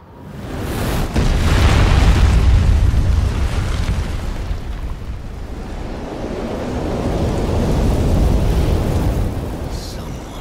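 A deep rumble rolls as dust billows.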